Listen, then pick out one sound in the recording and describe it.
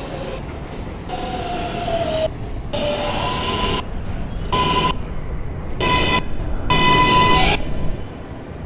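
A subway train rolls into a station with squealing brakes.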